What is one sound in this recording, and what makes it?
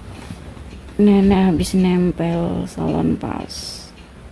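An elderly woman speaks nearby.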